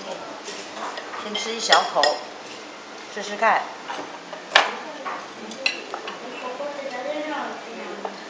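Cutlery clinks and scrapes on a plate.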